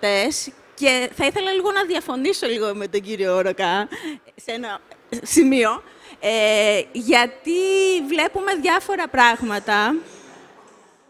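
A woman speaks with animation into a microphone, close by.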